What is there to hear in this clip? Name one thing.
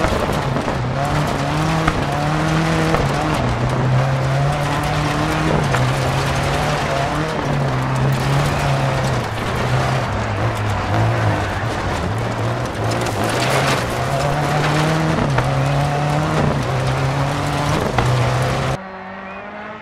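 A rally car engine roars and revs up and down as it shifts gears.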